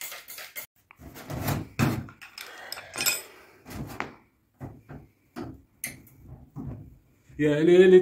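A screwdriver scrapes and clicks against metal.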